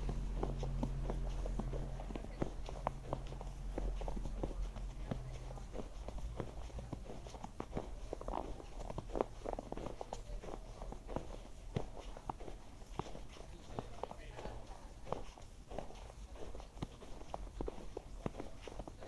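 Footsteps crunch steadily through fresh snow.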